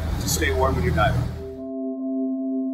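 An elderly man speaks calmly and close by.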